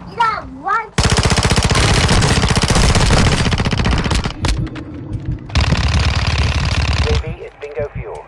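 Automatic gunfire rattles in rapid bursts close by.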